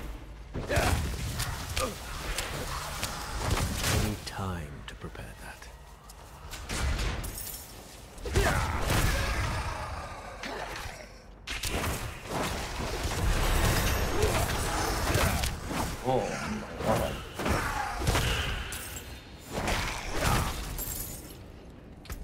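Game spells blast and crackle in rapid bursts.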